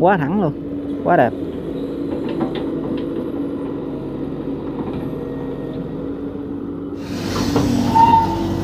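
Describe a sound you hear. An excavator engine rumbles steadily nearby.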